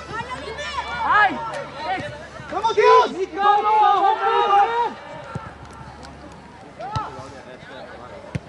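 Young men shout to each other across an outdoor football pitch.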